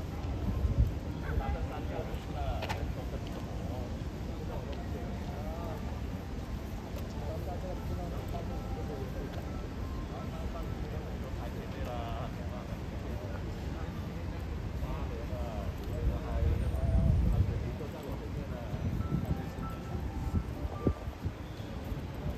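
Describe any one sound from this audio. Men chat in low voices nearby, outdoors.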